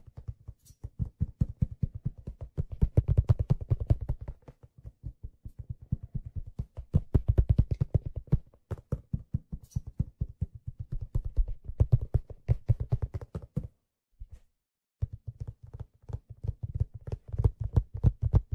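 A drummer pounds out a fast, driving beat on drums.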